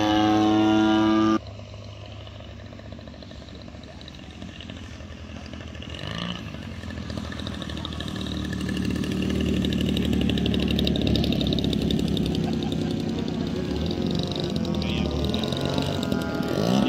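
A small model plane engine buzzes and grows louder as the plane comes in to land.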